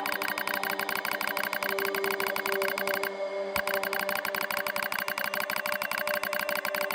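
Rapid electronic blips tick along steadily, pausing briefly.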